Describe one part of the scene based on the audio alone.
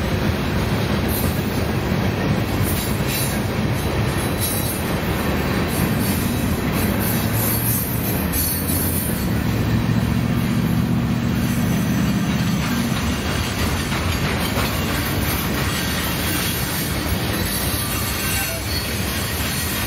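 A long freight train rumbles and clatters steadily along the tracks close by.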